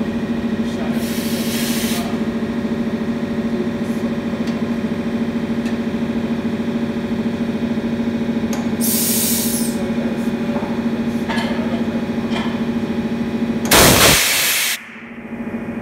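Compressed air hisses in short blasts from a tank.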